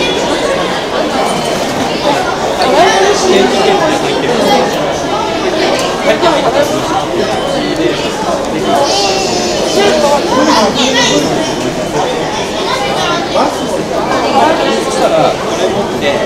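Several men and women talk nearby.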